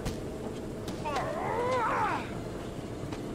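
A man grunts while fighting.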